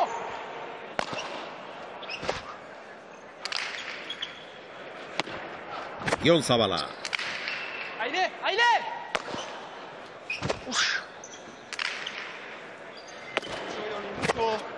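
A hard ball smacks against a wall and rings through a large echoing hall.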